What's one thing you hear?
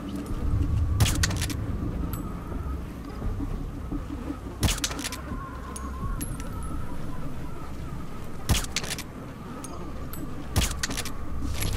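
A silenced pistol fires single muffled shots every few seconds.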